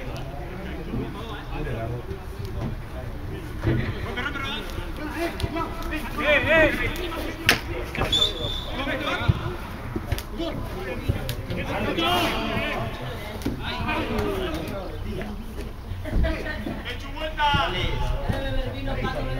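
Men shout to each other across an outdoor field.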